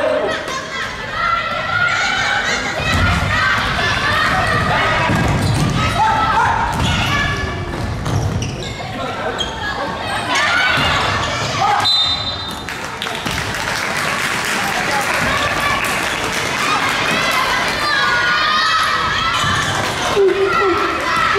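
A crowd of spectators cheers and chants loudly in a large echoing hall.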